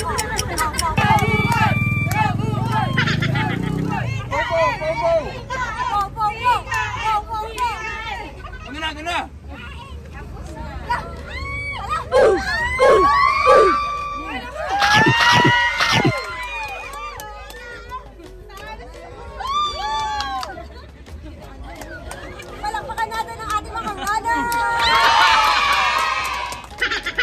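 A young woman talks and exclaims cheerfully.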